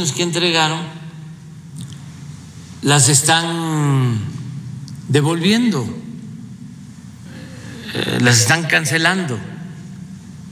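A young man talks expressively into a close microphone, in short bursts with pauses.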